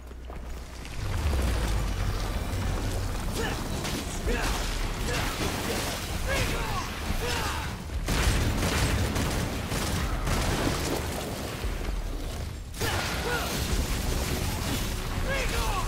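A huge monster roars and growls deeply.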